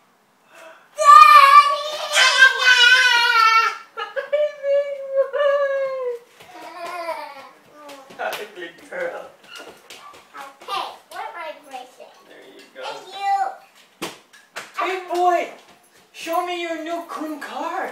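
A toddler squeals loudly with excitement.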